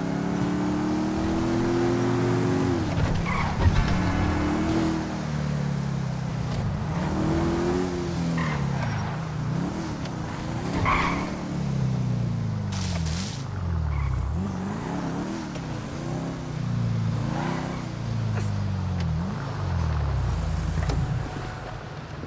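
A sports car engine revs up and down as the car speeds and turns.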